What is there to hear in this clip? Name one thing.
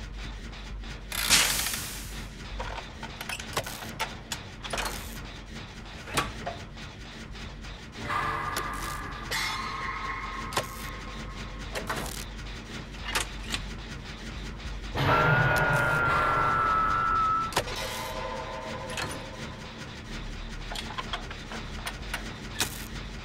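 Metal parts clank and rattle as an engine is worked on.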